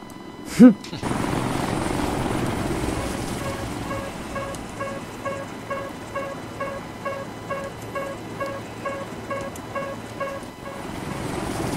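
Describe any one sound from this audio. A helicopter's engine drones steadily inside the cabin, with a rhythmic beeping.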